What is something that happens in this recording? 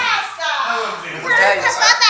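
A young child talks and squeals.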